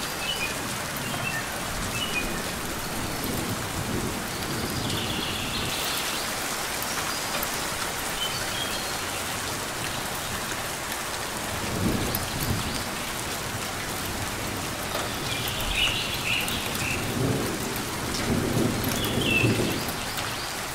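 A small bird chirps in short, high bursts.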